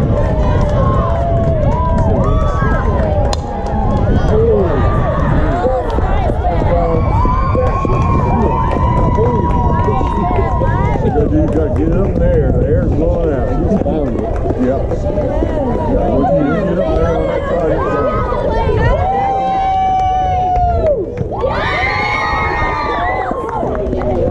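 Young girls cheer and shout excitedly.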